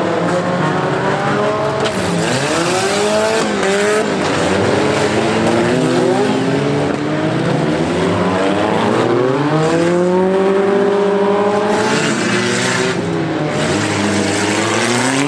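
Several car engines rev and roar, rising and falling in pitch.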